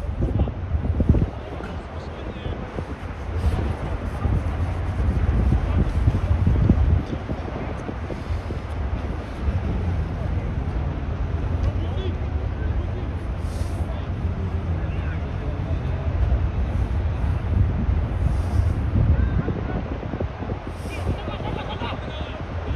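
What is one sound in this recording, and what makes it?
Young men shout to each other across an open field, far off.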